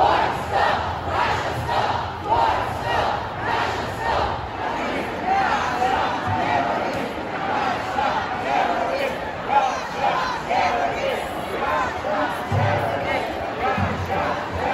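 A large crowd chatters outdoors, many voices blending together.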